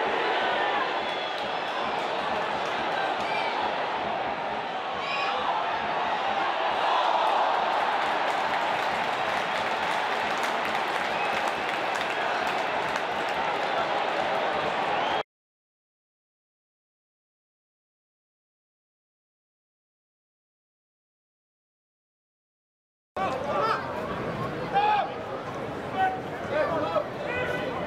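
A football crowd cheers and roars in an open stadium.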